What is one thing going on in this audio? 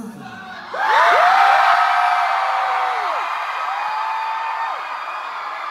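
A young woman sings into a microphone over loudspeakers.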